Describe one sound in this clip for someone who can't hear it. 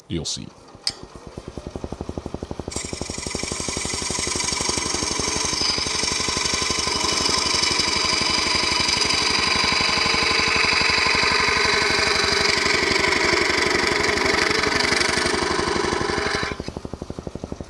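A chisel scrapes and hisses against spinning wood on a lathe.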